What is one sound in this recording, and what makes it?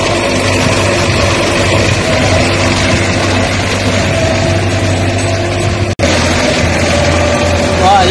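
A diesel tractor engine drones under load.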